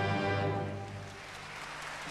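An orchestra plays a final loud chord in a large hall.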